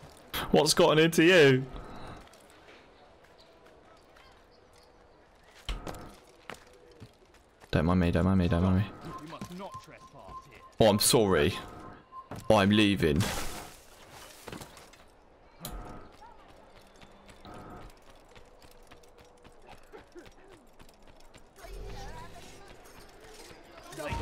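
Footsteps thud quickly across wooden boards and stone.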